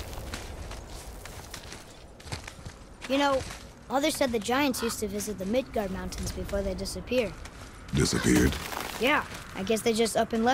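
Heavy footsteps crunch on snow and rock.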